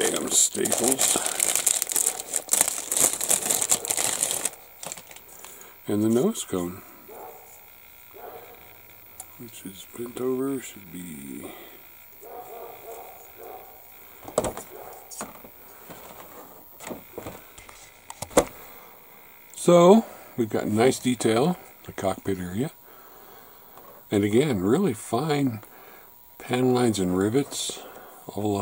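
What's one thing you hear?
A plastic sprue of model parts clicks and rattles softly as hands handle it.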